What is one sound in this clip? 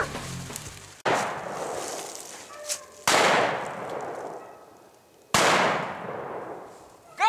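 A shotgun fires several times, each blast echoing through the woods.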